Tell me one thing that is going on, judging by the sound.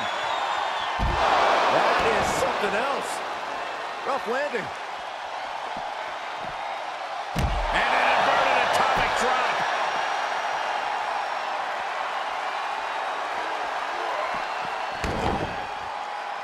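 A heavy body slams hard onto the floor with a deep thud.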